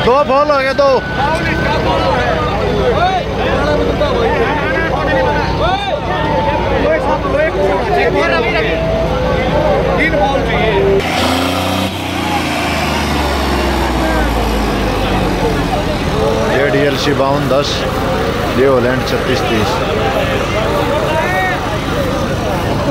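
A crowd of young men shouts and cheers close by.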